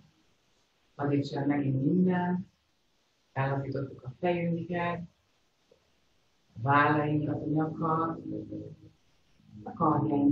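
A young woman speaks calmly and softly through an online call.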